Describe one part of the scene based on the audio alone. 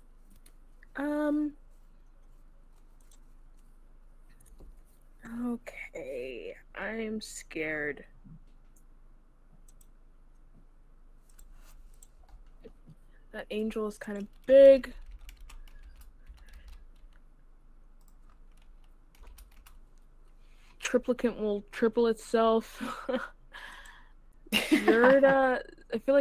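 A woman speaks with animation into a microphone.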